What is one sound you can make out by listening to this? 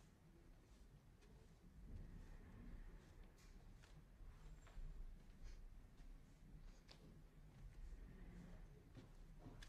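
A woman's footsteps shuffle softly across the floor.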